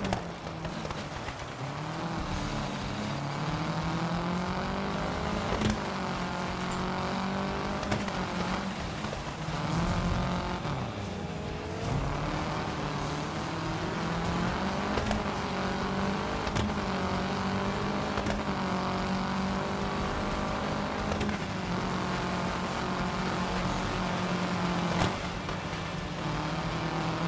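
A rally car engine revs hard, rising and falling as it shifts gears.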